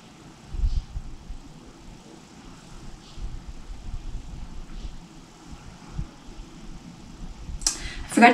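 Hands rustle through hair.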